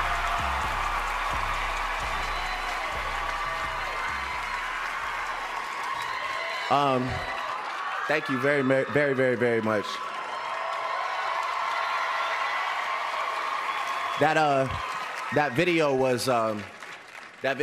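A crowd cheers and claps steadily.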